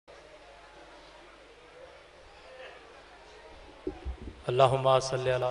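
A crowd of men murmurs quietly.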